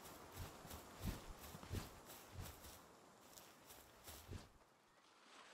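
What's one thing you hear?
Footsteps thud steadily on the ground.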